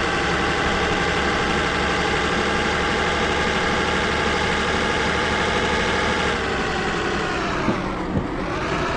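A truck engine drones steadily, then its pitch drops as the truck slows down.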